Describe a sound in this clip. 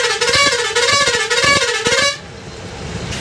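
A bus horn plays a loud warbling tune up close.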